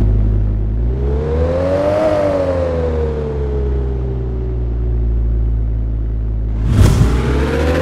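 A car engine revs up and idles loudly.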